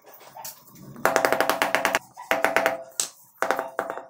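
A rubber mallet taps rapidly on a tile.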